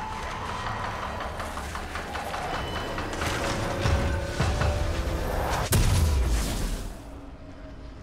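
Game spell effects whoosh and blast in bursts.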